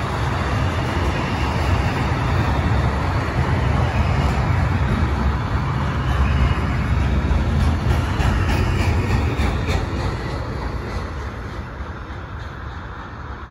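A long freight train rumbles past close by, wheels clattering on the rails, then slowly fades.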